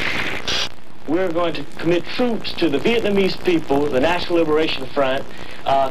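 A man speaks earnestly into a microphone.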